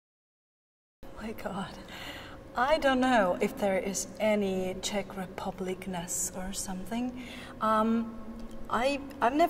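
A young woman speaks calmly to a nearby microphone.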